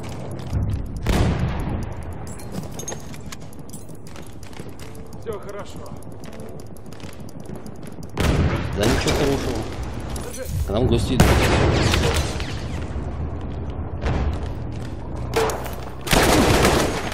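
Explosions boom loudly nearby.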